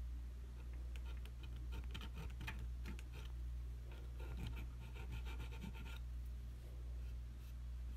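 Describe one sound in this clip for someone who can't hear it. A small metal tool scrapes and clicks against a hard plastic foot.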